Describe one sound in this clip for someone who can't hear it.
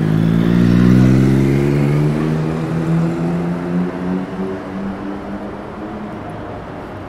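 A van engine rumbles close by and drives away.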